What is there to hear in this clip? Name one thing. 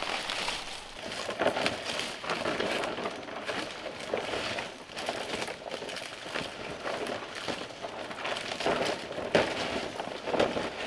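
Palm leaves rustle and crunch on a roof frame overhead.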